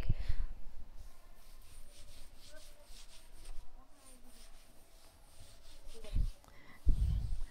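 A cloth rubs against a chalkboard, wiping it.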